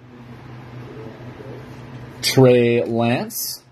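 Trading cards rustle softly as a hand shuffles them.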